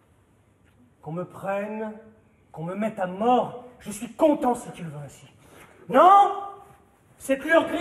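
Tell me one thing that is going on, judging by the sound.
A man sings in a strong voice.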